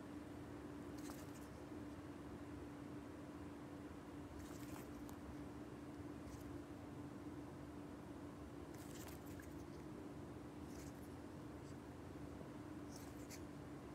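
A cockatiel chirps in short, high bursts.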